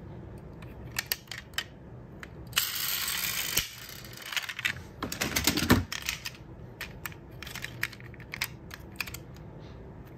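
Small plastic and metal parts click and tap as toy cars are handled.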